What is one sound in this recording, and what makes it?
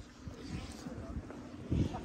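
Footsteps scuff on asphalt outdoors.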